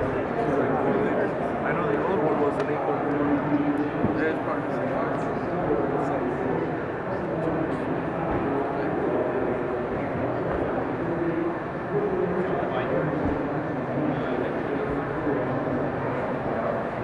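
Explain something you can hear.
A crowd of men and women chatters in a large, echoing hall.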